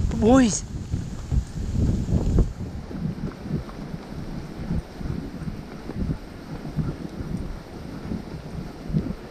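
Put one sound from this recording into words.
Sled runners hiss and scrape steadily over snow.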